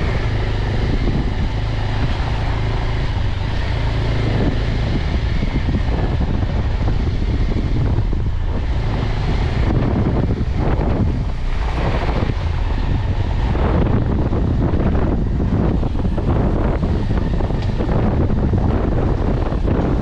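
Tyres rumble over a bumpy dirt track.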